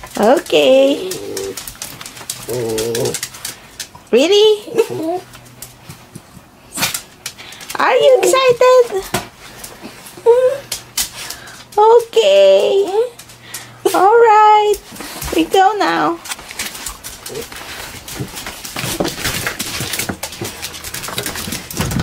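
Small dogs' claws click and patter on a hard floor.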